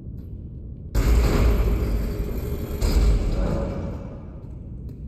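A heavy stone mechanism rumbles and grinds.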